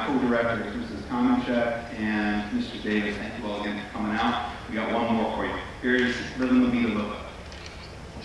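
A man speaks calmly into a microphone over loudspeakers.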